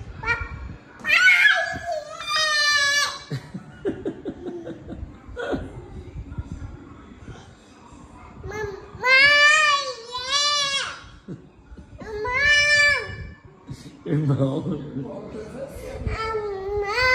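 A toddler girl shrieks in high-pitched squeals.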